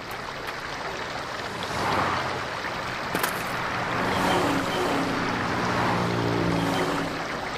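Traffic rushes past on a nearby highway.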